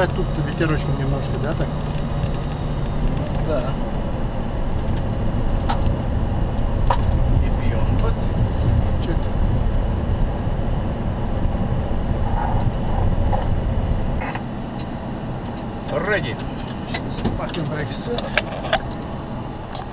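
An aircraft's engines rumble steadily while it taxis, then quieten.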